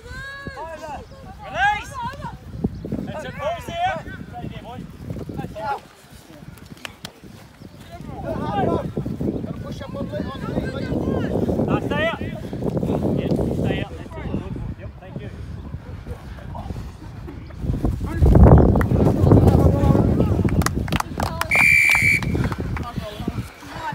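Young players shout to each other outdoors.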